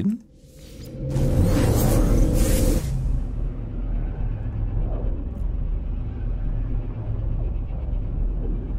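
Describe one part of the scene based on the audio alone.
A deep roaring whoosh swells up and rushes on steadily.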